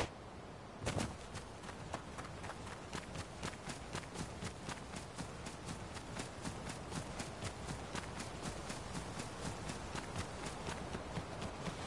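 Quick footsteps run over grass.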